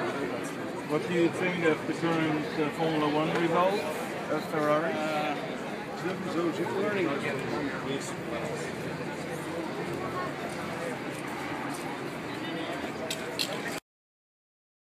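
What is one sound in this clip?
A crowd chatters outdoors in a busy street.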